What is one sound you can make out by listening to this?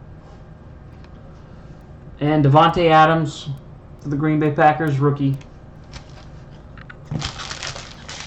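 Foil card wrappers crinkle and rustle close by.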